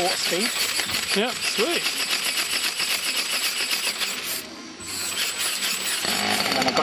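A model ornithopter's wings flap with a rapid, fluttering whir up close.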